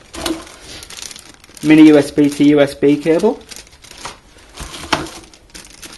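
Cardboard rustles as hands rummage in a box.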